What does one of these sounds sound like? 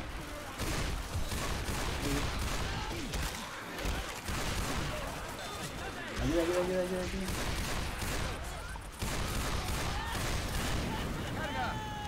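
Rapid pistol shots ring out.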